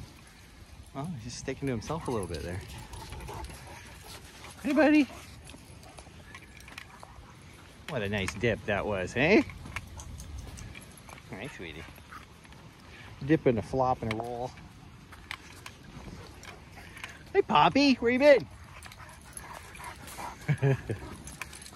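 Dogs whine and yelp in short bursts outdoors.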